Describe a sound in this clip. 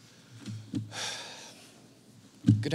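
A man sniffs and breathes heavily.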